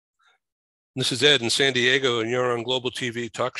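An older man speaks with animation over an online call.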